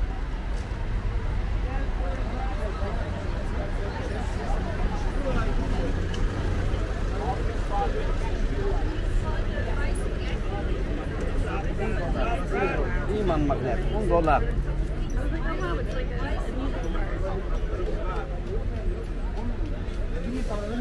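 A crowd of people chatter all around, outdoors.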